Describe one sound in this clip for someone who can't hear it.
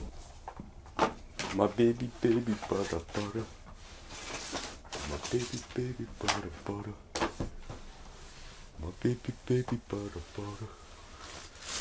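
A young man speaks close by in short, animated bursts.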